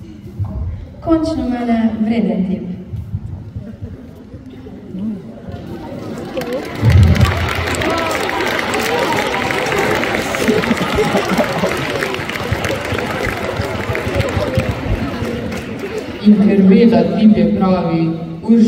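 A girl speaks into a microphone over loudspeakers.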